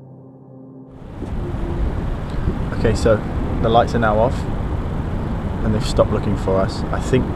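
A young man speaks quietly and closely into a microphone.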